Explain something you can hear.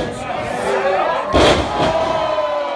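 A wrestler slams down onto a wrestling ring mat with a loud thud.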